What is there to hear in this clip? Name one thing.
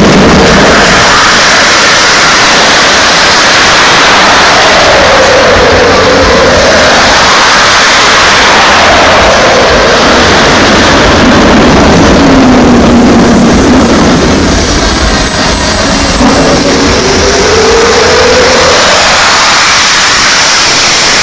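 A monster truck engine roars and revs in a large echoing arena.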